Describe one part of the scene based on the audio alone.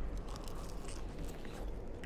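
A man chews food close to a microphone.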